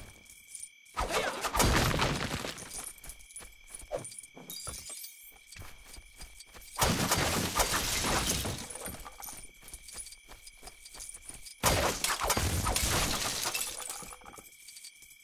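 Toy bricks shatter and clatter loudly as objects are smashed apart.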